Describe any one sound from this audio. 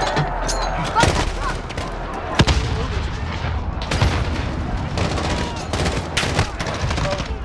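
Gunshots crack sharply nearby, one at a time.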